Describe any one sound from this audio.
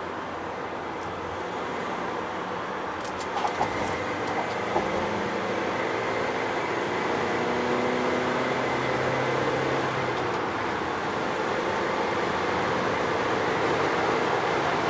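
A vehicle engine drones steadily at speed.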